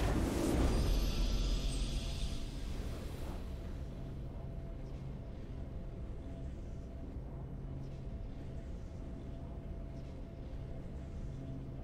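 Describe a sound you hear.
Calm video game victory music plays softly.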